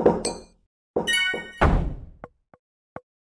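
Blocks crash and shatter with a loud burst.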